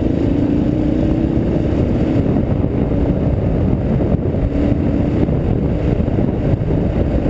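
Tyres crunch and rumble over a gravel track.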